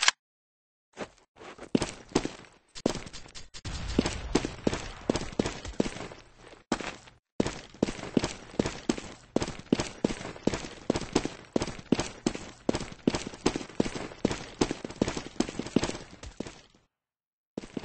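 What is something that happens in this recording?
Quick footsteps thud steadily on a hard floor.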